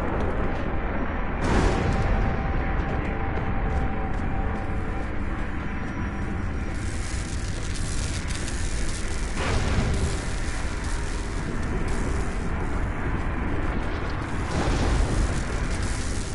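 Light footsteps patter as a small figure runs across stone.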